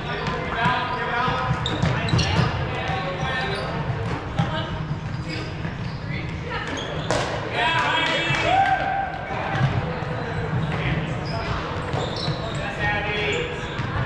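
Young players shout and call out to each other across the gym.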